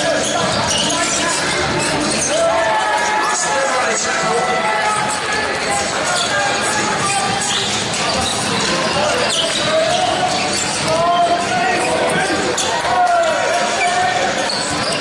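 Sneakers squeak sharply on a hardwood court in an echoing hall.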